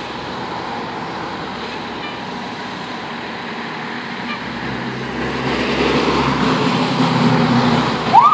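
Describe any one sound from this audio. Cars pass by on a road close by, their tyres hissing on the wet surface.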